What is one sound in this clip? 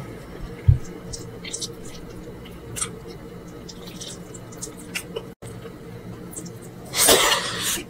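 Fingers squish and squeeze sticky rice up close.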